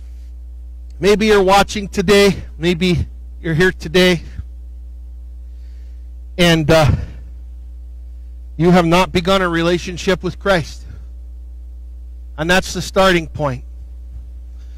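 A middle-aged man speaks with animation through a microphone, in short bursts.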